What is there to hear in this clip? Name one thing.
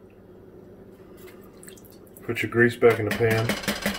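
A ladle scrapes and stirs in a pot.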